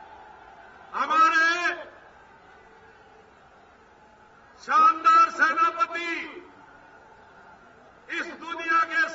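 A man speaks in loud, short bursts.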